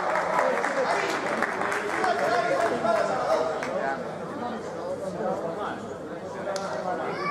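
Sneakers squeak and players' steps thud in a large echoing hall.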